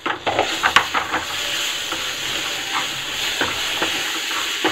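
Food sizzles loudly in a hot pan.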